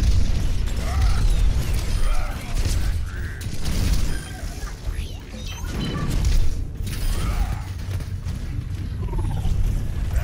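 Video game gunfire fires in rapid bursts.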